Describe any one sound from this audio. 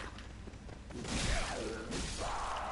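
A sword clangs as it strikes an enemy.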